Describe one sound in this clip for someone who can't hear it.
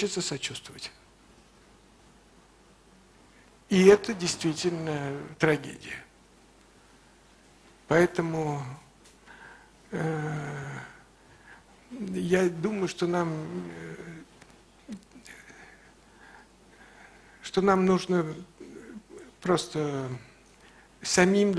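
A man speaks calmly and slowly into a microphone, with long pauses.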